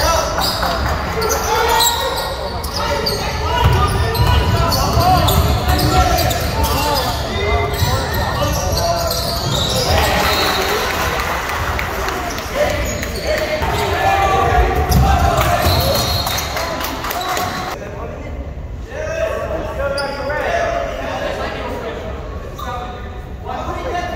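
Spectators cheer and talk loudly in an echoing gym.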